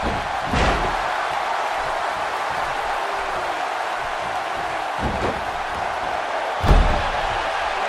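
A body slams onto a ring mat with heavy thuds.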